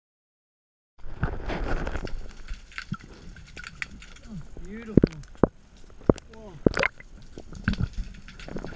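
Water swirls and bubbles, heard muffled from underwater.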